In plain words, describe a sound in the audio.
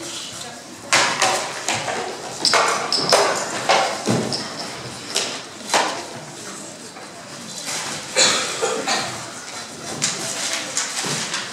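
Young people talk and call out on a stage.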